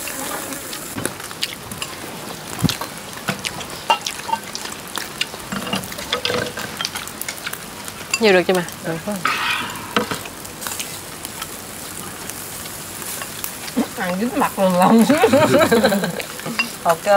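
Chopsticks and bowls clink.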